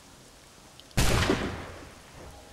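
A musket fires with a loud bang.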